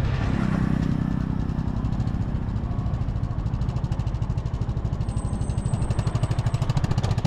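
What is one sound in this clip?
A motorcycle engine rumbles and putters steadily up close.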